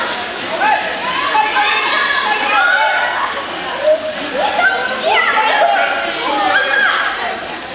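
Children shout and call out in an echoing indoor pool hall.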